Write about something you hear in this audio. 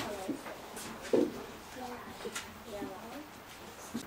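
Paper rustles as a boy handles it.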